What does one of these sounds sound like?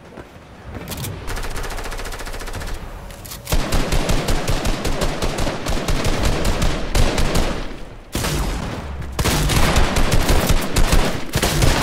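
Footsteps run quickly and steadily across grass.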